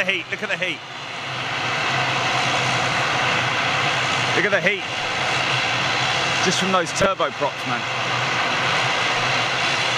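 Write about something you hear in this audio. A jet engine roars steadily close by.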